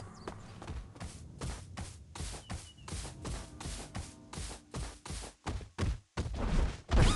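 A large creature's feet patter quickly and evenly as it runs.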